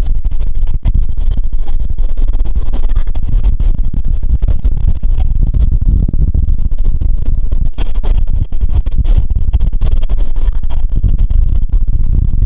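Train wheels clatter rapidly over rail joints.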